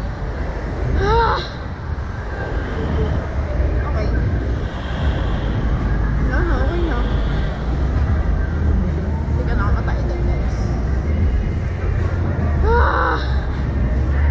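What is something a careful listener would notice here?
A young woman screams and shrieks in bursts.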